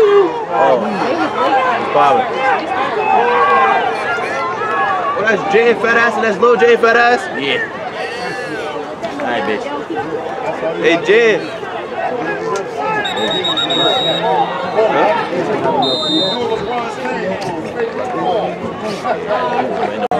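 A crowd of adults shouts and cheers close by.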